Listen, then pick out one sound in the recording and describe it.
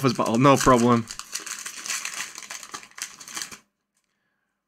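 A foil wrapper crinkles.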